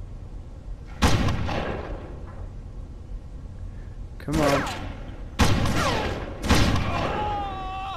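A rifle fires sharp shots that ring out with echo.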